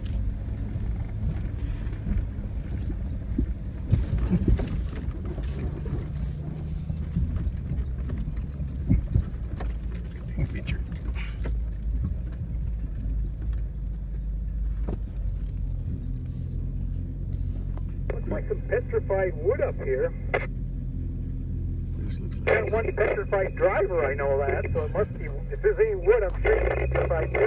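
A car engine rumbles low and steady while driving slowly.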